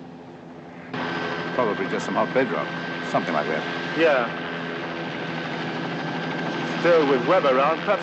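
A man speaks inside a helicopter over the engine noise.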